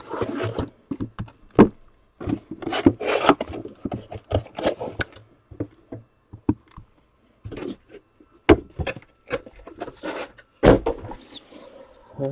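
Cardboard boxes knock and thud as they are set down.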